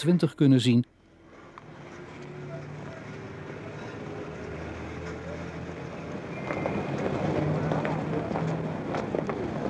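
A crowd bustles and murmurs in a busy street.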